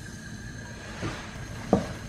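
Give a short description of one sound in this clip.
Milk pours into a pot.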